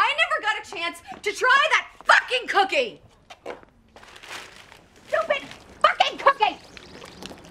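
A woman speaks quickly and with animation, close by.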